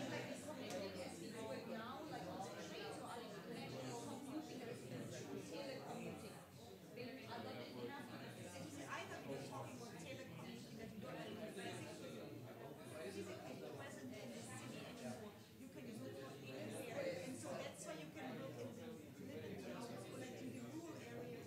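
Many men and women chatter at once in a large room.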